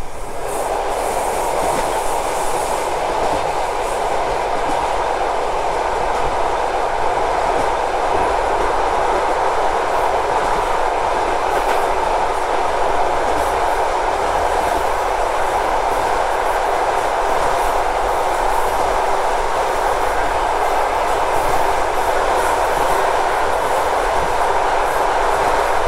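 A freight train rumbles past close by, wheels clattering on the rails.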